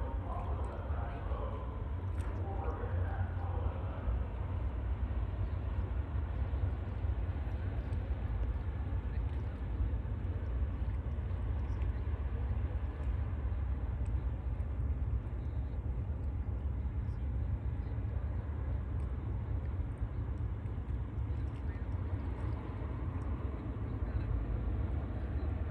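A ferry's engine rumbles low across the water.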